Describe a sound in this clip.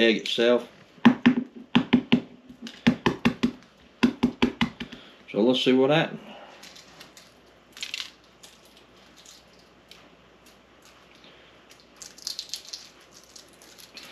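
Eggshells crack and crinkle as they are peeled.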